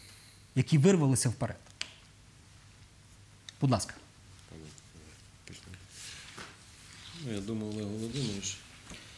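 A man speaks calmly into a clip-on microphone, with pauses.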